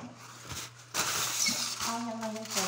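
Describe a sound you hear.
Foil crinkles and rustles loudly.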